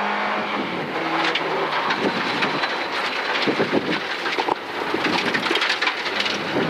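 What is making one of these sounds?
Gravel and stones rattle and clatter against the underside of a car.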